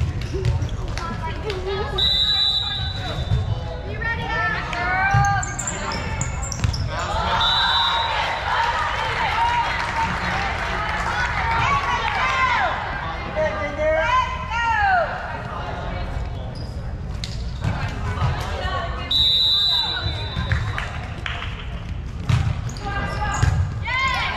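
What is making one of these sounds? A crowd of young women cheers and shouts in a large echoing gym.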